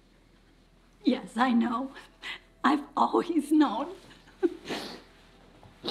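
An older woman exclaims with excitement up close.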